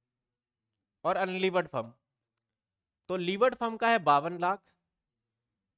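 A man speaks calmly and clearly into a close microphone, in short phrases.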